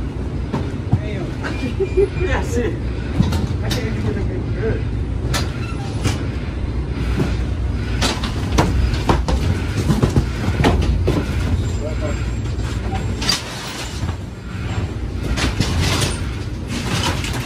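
Cardboard boxes thump and scrape as they are handled and stacked.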